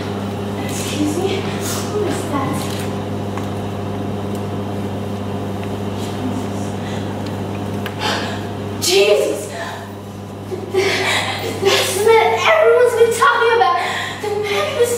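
A young woman speaks loudly and with animation.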